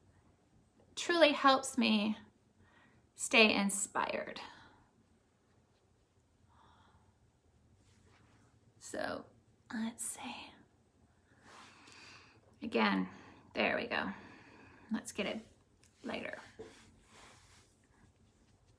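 A woman talks calmly and close by, in short bursts with pauses.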